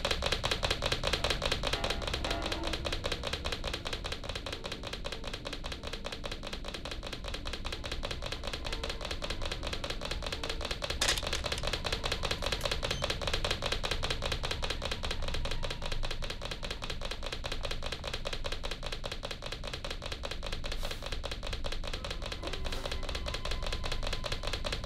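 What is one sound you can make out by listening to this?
Footsteps thud on a creaking wooden floor.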